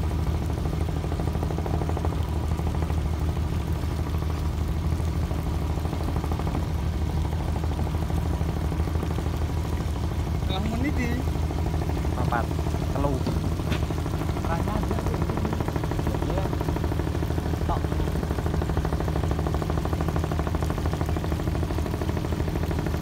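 A boat engine drones steadily close by.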